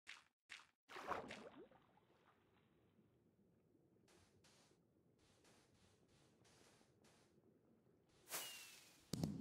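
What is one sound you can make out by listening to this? Water swishes softly as a swimmer moves underwater.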